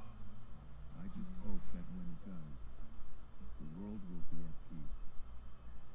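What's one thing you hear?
A man speaks calmly and quietly into a microphone.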